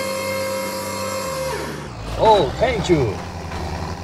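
Metal ramps clank down onto the road.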